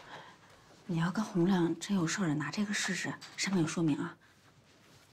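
A second young woman speaks gently.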